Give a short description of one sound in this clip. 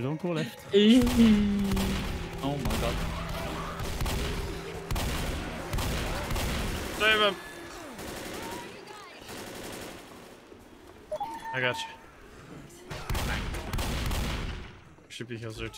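Shotgun blasts boom in quick succession.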